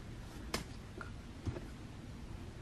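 A small plastic cup clicks down onto a hard glass surface.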